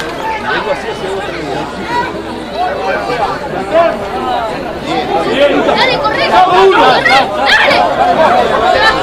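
A crowd of spectators shouts and cheers outdoors, growing louder and more excited.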